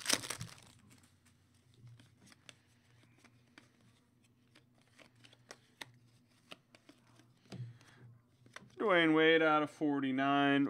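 Trading cards click and slide against each other.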